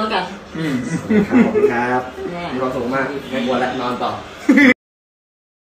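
An elderly woman laughs nearby.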